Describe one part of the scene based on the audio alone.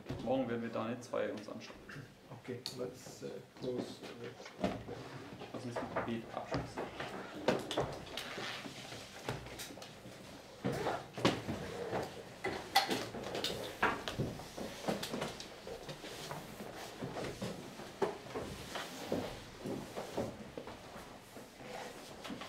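A middle-aged man speaks calmly in a room.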